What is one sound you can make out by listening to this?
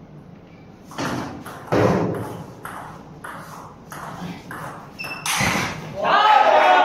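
A ping-pong ball clicks back and forth between paddles and table in a quick rally.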